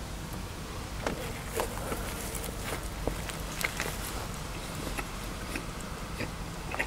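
A man bites into a sandwich with crisp lettuce close to a microphone.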